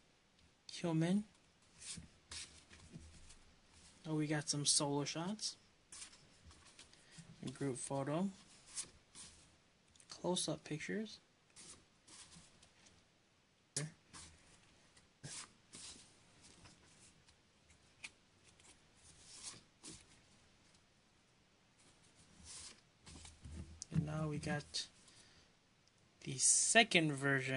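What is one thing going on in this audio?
Stiff paper cards rustle and flick as they are leafed through by hand.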